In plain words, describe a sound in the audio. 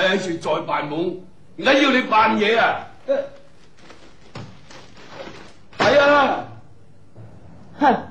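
An elderly man scolds loudly and sternly, close by.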